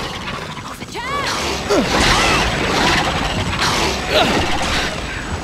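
Creatures shriek nearby.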